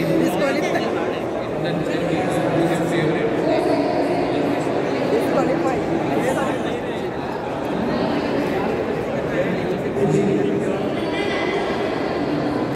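A crowd of people chatters loudly nearby.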